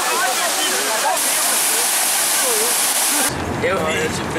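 A waterfall pours down heavily.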